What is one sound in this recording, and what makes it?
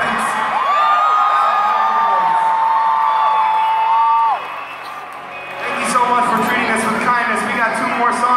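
A large crowd sings along and cheers.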